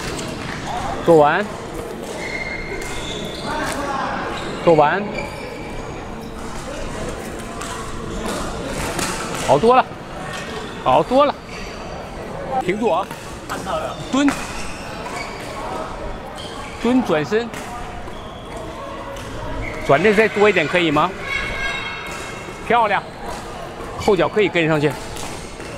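Sports shoes squeak sharply on a court floor.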